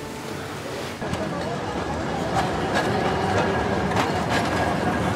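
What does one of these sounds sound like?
A tram rumbles along a street.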